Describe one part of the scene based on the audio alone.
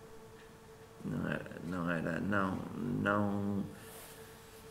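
A man speaks calmly close to a microphone.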